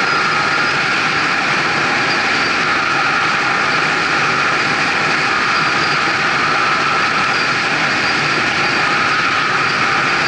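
Wind roars steadily past while travelling fast.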